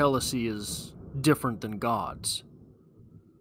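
A man speaks calmly into a close microphone, then falls silent.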